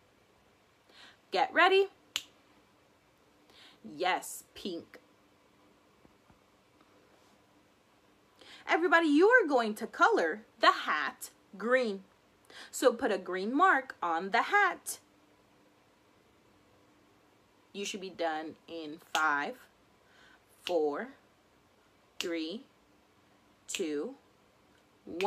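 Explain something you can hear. A young woman talks calmly and close up, with pauses.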